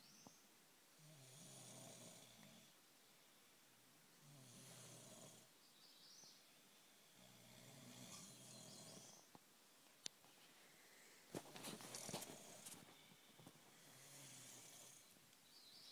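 A young person snores loudly in deep sleep.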